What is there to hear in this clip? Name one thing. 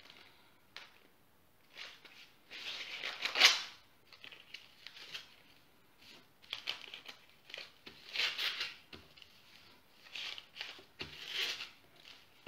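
Baking paper rustles and crinkles.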